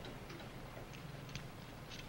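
A small glass bottle clicks and clinks softly in someone's hands.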